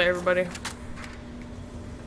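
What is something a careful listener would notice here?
A rifle is reloaded with metallic clicks.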